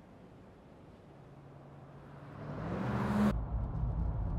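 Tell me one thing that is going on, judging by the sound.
A truck engine grows louder as it approaches along a road and roars past.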